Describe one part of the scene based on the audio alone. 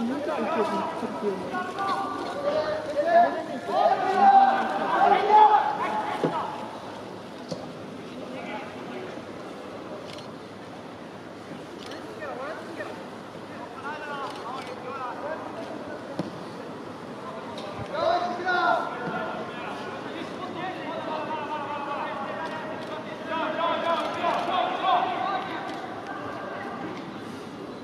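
A crowd murmurs in the stands of an outdoor stadium.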